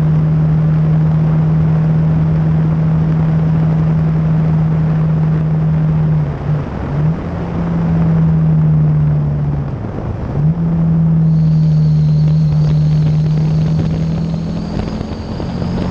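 A motorcycle engine hums steadily close by, dipping briefly as the rider shifts gears.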